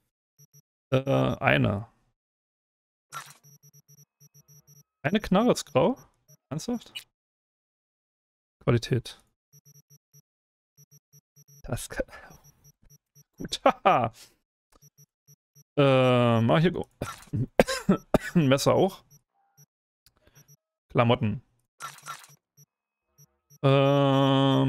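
A man speaks into a close microphone in short, casual bursts.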